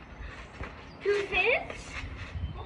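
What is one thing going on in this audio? A young boy shouts with excitement.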